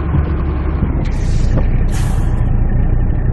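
Truck air brakes hiss sharply twice.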